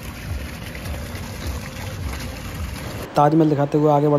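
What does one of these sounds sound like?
Water from a small fountain splashes and trickles.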